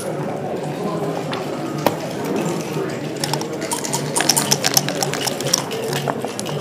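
Game checkers click against each other and the board as they are moved.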